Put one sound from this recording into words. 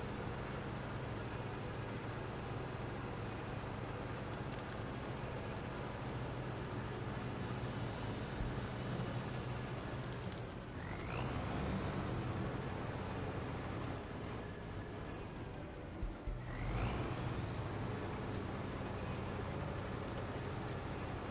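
A heavy truck engine rumbles steadily and revs up as it climbs.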